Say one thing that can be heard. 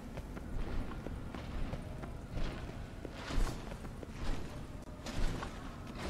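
Heavy footsteps crunch on the ground.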